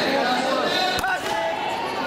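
A baton slaps into a hand.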